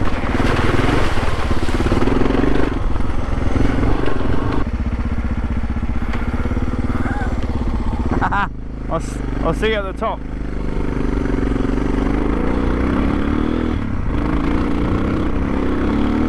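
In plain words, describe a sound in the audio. A motorcycle engine runs and revs.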